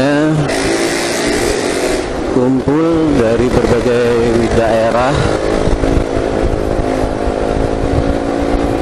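A motorcycle engine hums and revs while riding along a road.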